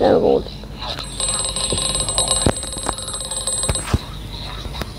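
Bright electronic chimes ring out as coins are collected.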